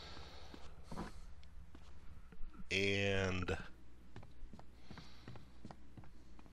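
Footsteps thud on a wooden floor at a walking pace.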